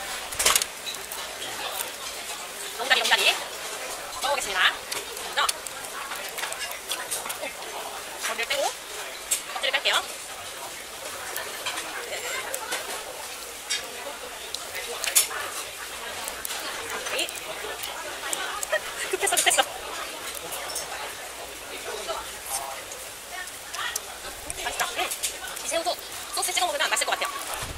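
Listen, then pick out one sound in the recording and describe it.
Shells crack and click as prawns are peeled by hand.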